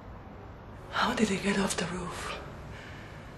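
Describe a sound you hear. A woman speaks in a pleading voice, close by.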